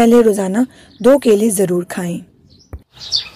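A young girl speaks brightly and with animation, close by.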